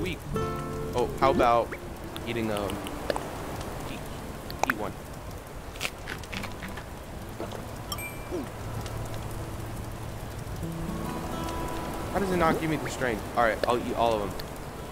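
A campfire crackles.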